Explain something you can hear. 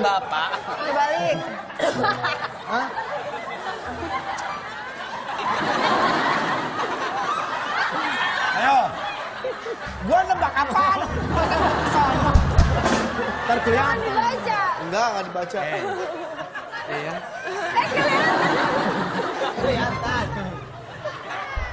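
An audience laughs and cheers.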